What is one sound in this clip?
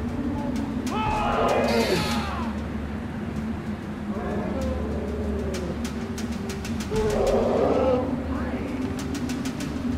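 Wind rushes steadily past a gliding bird.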